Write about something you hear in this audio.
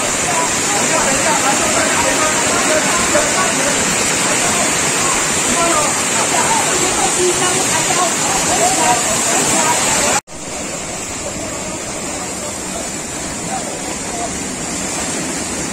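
Boots splash through shallow water.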